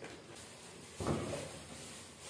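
A cardboard box thumps down onto a surface.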